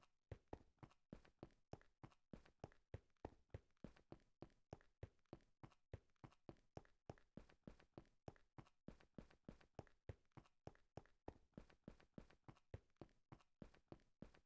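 Quick footsteps tap steadily on stone.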